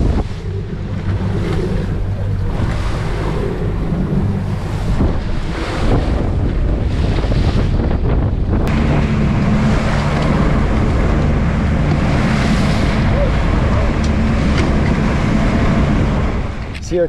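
Waves splash and slap against a boat's hull.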